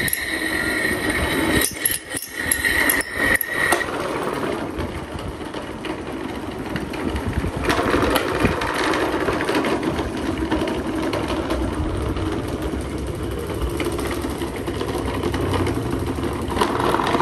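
Electric fans whir and hum steadily.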